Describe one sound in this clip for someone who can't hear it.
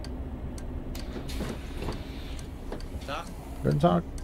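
Bus doors open with a pneumatic hiss.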